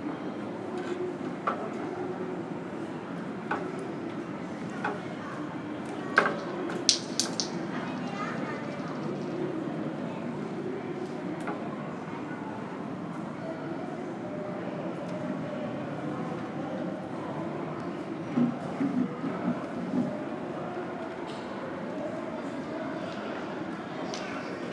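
Air conditioning hums steadily through a large echoing hall.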